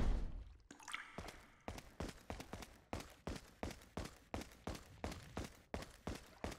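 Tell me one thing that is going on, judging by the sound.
Footsteps walk steadily across a hard floor.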